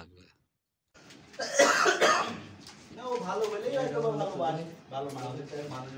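Several men talk over one another.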